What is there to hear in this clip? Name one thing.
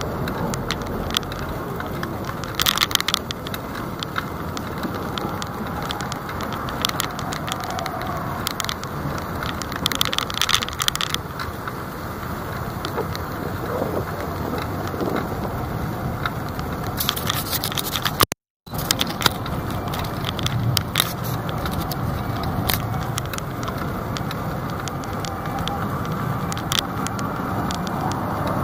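Tyres roll with a low rumble on the road.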